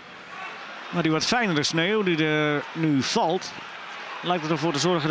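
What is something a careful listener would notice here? A stadium crowd bursts into loud chanting.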